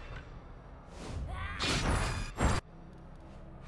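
A magic spell bursts with a loud, crackling whoosh.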